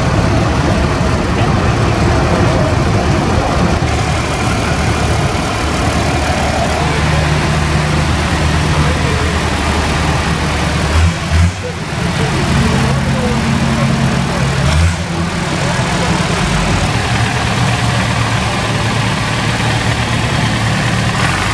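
Tractor engines rumble and idle close by.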